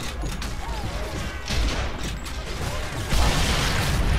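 Gunshots crack nearby.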